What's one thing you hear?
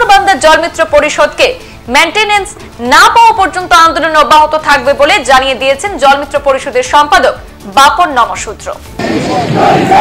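A young woman reads out news calmly through a microphone.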